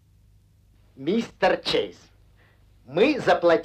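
A man speaks with urgency.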